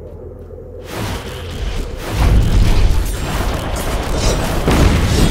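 A magic attack crackles and bursts loudly.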